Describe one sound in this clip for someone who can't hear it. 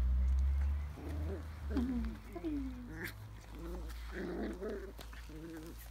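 Puppies whine and yip close by.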